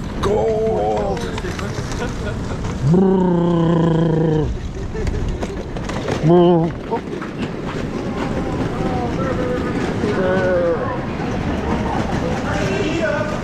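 A man speaks close by, with animation.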